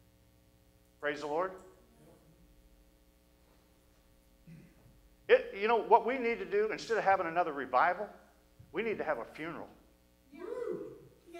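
A middle-aged man preaches with emphasis through a microphone, in a hall with some echo.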